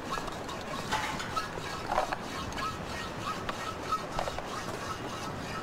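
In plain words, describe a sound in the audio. Men tap on a metal casing with tools.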